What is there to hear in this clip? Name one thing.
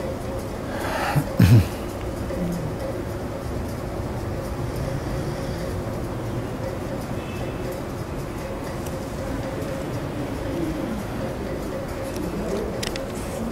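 A middle-aged man speaks calmly into a close microphone, reading out.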